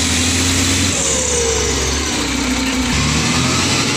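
A heavy machine's diesel engine rumbles close by.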